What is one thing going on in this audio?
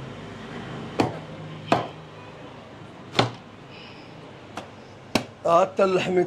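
A cleaver chops sharply through meat and bone on a wooden block.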